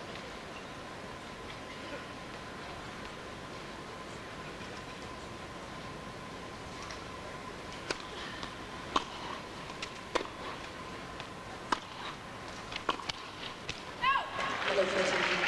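Crowd murmurs fill a large echoing arena.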